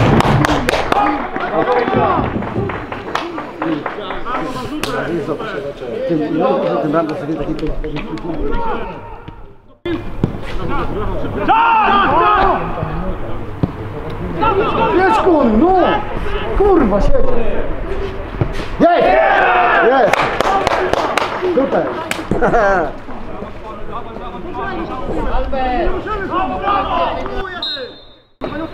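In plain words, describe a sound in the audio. Young men shout and call out to each other across an open playing field.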